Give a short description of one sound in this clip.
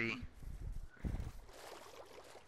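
Water splashes as something plunges into it.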